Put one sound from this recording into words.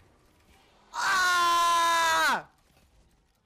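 A young man yells out loudly into a microphone.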